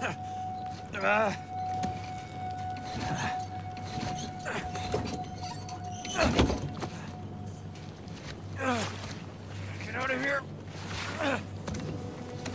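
A young man grunts and groans with strain, close by.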